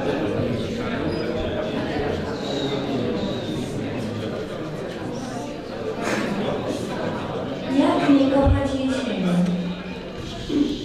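An audience murmurs and chatters quietly in an echoing hall.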